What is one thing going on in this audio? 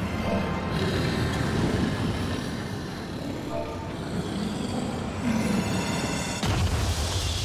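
A huge creature roars and growls deeply.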